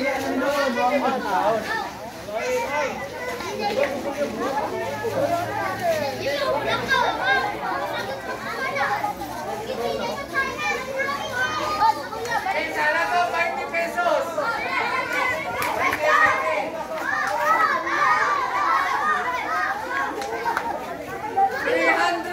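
Children shout and call out excitedly.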